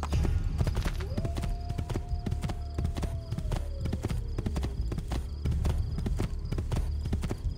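Horse hooves gallop rapidly over soft ground.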